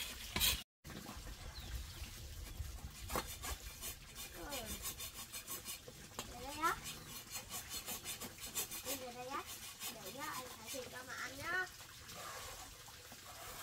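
A boy scrubs and clinks dishes.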